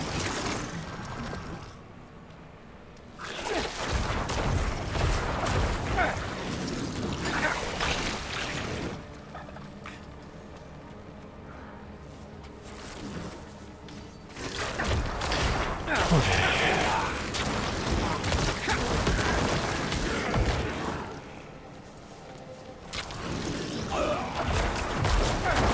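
Swords clash and spells burst in a fast fight.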